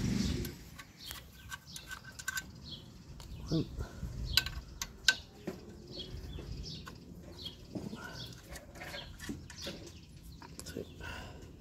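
Metal tools clink and scrape against an engine part.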